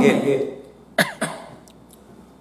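A middle-aged man coughs.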